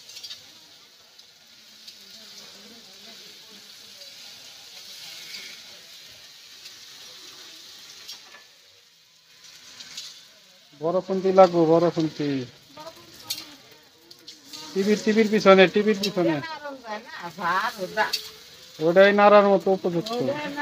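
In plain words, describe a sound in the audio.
A metal spoon scrapes and stirs food in a wok.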